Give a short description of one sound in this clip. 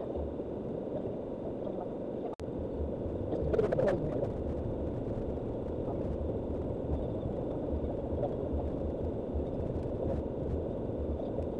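Tyres crunch and rattle over a rough dirt track.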